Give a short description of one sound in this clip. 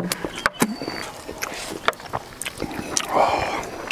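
An elderly man chews food noisily up close.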